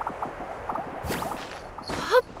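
A sudden magical whoosh bursts out.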